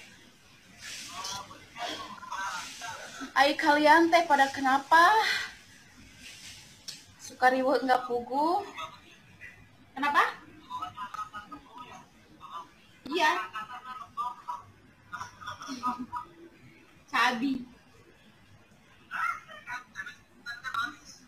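A young woman talks close by, with animation, through a phone microphone.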